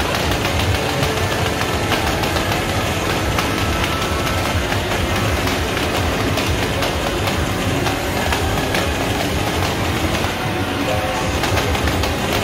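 Loud rhythm game music plays from a loudspeaker.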